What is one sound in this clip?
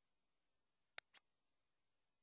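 A computer game menu gives two short clicks.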